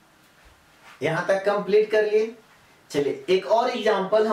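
A man speaks clearly and calmly, close to a microphone.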